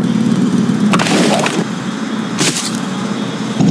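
Gunshots crack twice.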